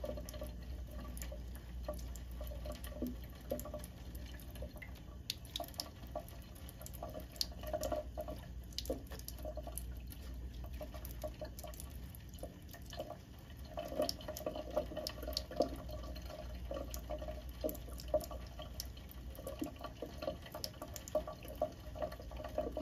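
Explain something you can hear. A thin stream of water trickles from a tap into a sink.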